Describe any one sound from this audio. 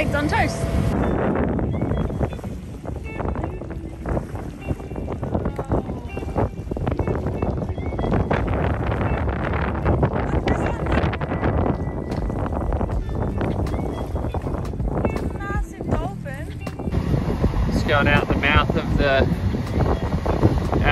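Wind blows strongly across open water.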